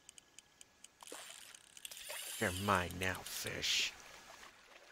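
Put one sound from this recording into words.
Water splashes as a fish is hooked.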